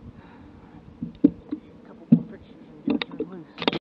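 A fish thrashes and flops against a boat.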